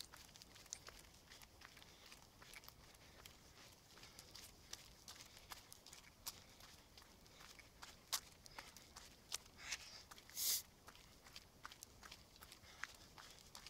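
Footsteps crunch on gravel at a brisk pace.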